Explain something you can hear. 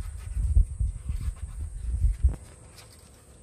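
A plastic bowl knocks and rustles as it is set down.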